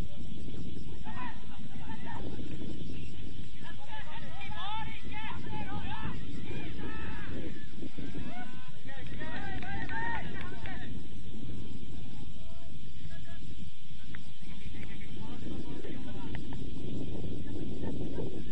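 Young men shout and call out in the distance outdoors.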